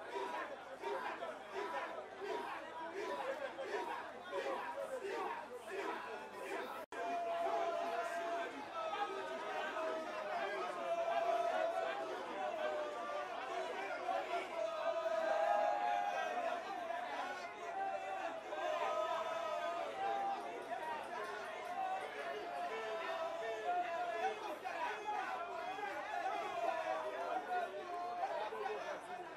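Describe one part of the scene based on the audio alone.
A large outdoor crowd cheers and sings along loudly.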